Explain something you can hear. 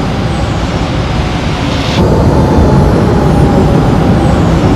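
A loud whoosh rises as a spacecraft sweeps past and swells into a deeper roar.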